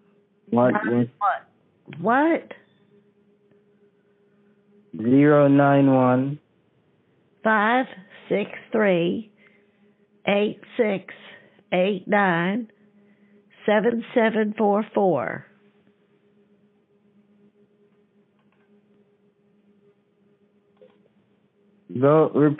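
An elderly woman talks in short bursts over a phone line.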